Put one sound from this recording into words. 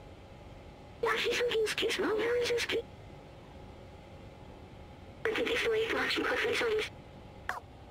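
A small robot chatters in quick electronic beeps and warbles.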